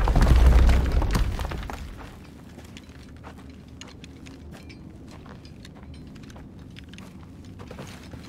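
Footsteps crunch softly on loose stones and gravel.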